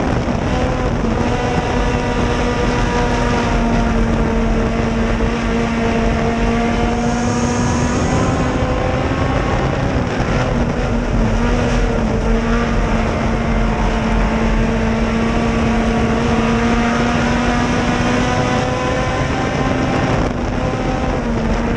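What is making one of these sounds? Tyres rumble and spray over loose dirt.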